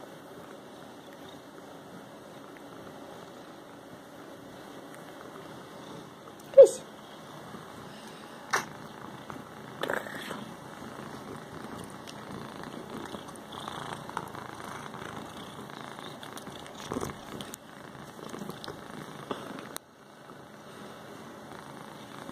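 A hand rubs softly through a cat's fur.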